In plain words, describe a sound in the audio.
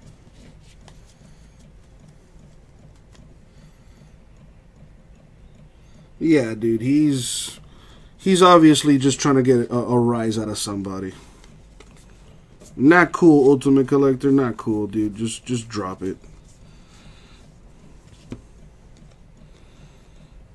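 Trading cards rustle and slide against each other in hands.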